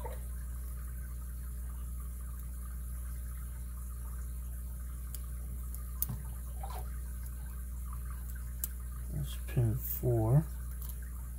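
A metal pick clicks and scrapes softly inside a padlock.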